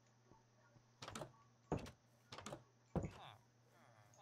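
A wooden door bangs open and shut.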